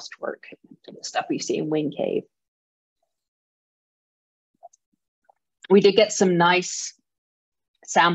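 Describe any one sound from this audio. A woman talks calmly over an online call, pausing between phrases.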